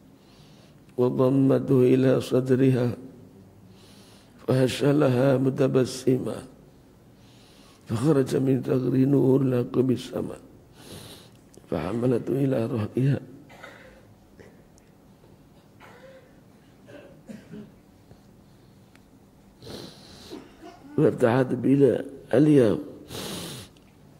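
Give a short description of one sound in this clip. An elderly man recites in a steady chanting voice through a microphone, in phrases with pauses between them.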